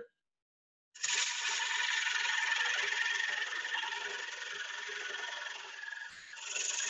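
A chisel scrapes against spinning wood on a lathe with a steady hiss.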